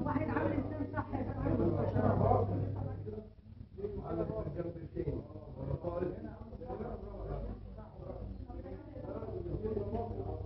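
Several men talk over one another nearby.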